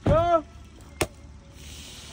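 A champagne cork pops.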